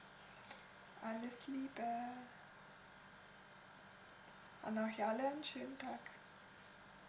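A woman speaks calmly and closely into a microphone, in short phrases.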